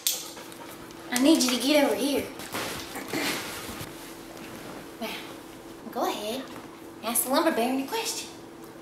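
A young woman talks to a dog in a lively voice.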